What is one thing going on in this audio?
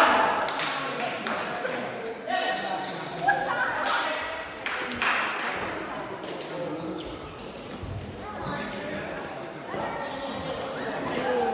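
Shuttlecocks are struck with rackets in a large echoing hall.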